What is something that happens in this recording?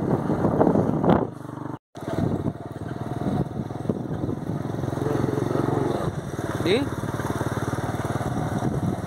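A motorcycle engine putters steadily up close.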